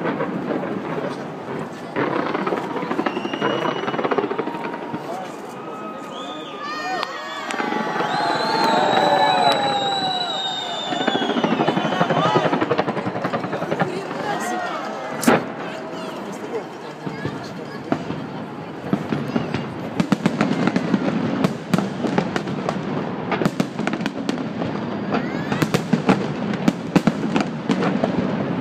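Fireworks crackle and pop continuously.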